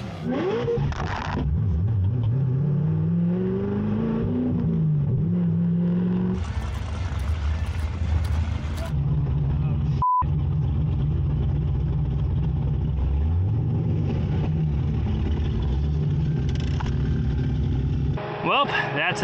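A powerful car engine revs and rumbles loudly from inside the car.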